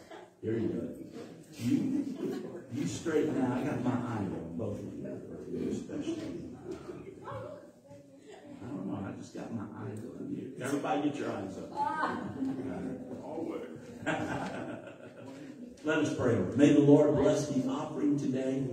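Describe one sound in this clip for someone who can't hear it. A woman speaks through a microphone in an echoing room.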